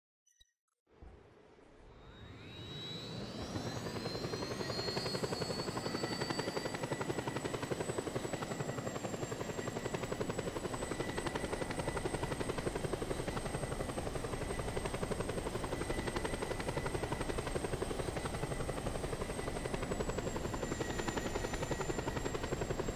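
A helicopter's rotor thumps quickly and steadily.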